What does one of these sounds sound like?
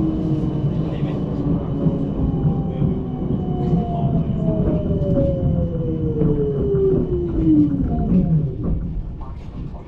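A tram rumbles along its rails.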